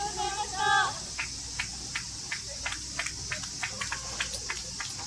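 Kayak paddles dip and splash in the water in a quick rhythm close by.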